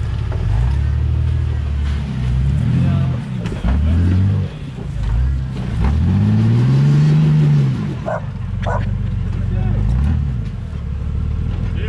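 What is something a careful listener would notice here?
An engine revs hard, rising and falling in pitch.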